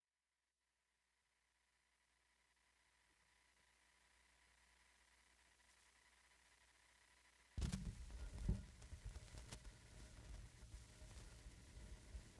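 A turntable hums and hisses faintly as a record spins.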